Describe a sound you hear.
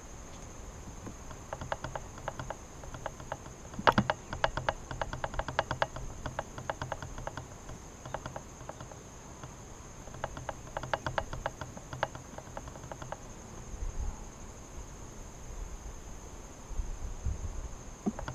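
Wooden hive parts knock and scrape softly.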